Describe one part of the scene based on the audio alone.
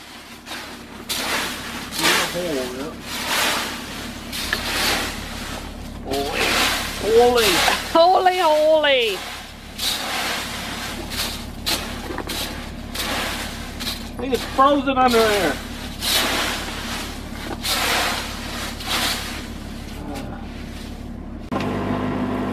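A rake scrapes and rustles through dry leaves.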